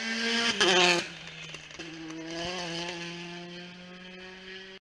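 A rally car engine roars as it shifts gears and fades into the distance.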